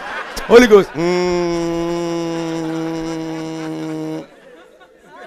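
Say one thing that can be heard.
A man sings a long held note through a microphone.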